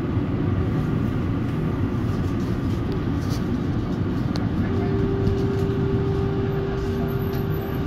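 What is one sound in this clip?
Another tram passes close by outside.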